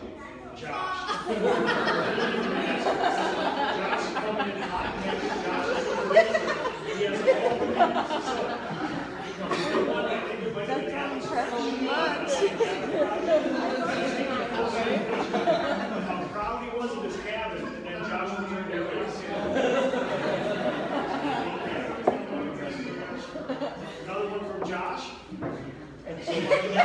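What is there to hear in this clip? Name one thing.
A crowd of adults chatters in a room that echoes.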